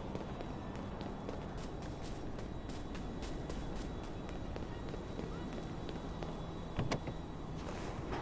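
Footsteps run quickly across hard ground.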